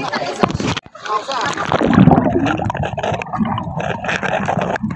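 Muffled underwater bubbling and rumbling.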